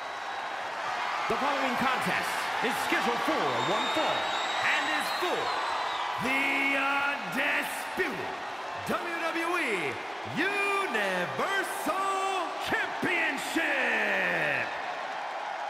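A man speaks loudly through a microphone, echoing around the arena.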